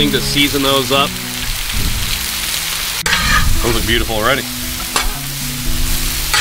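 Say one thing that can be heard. Meat sizzles steadily on a hot griddle.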